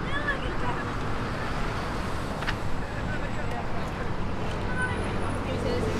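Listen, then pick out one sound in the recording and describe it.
Young women chat briefly as they walk past close by.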